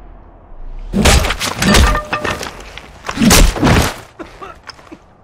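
Blows land hard in a scuffle.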